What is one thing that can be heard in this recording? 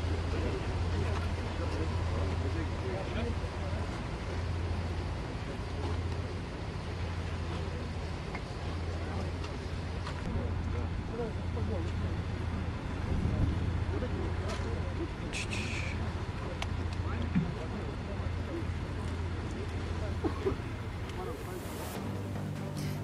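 Men talk quietly among themselves outdoors.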